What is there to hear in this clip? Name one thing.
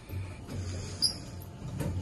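A finger presses an elevator button with a soft click.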